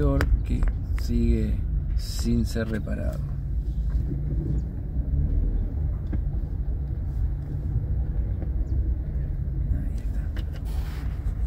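A car engine idles with a low steady rumble.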